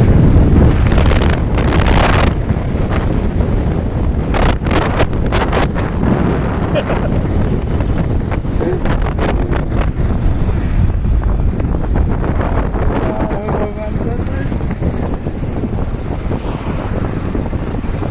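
Wind buffets loudly past the rider on a moving motorbike.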